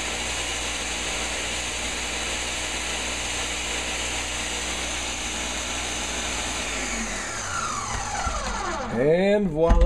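A blender whirs loudly and steadily, then winds down.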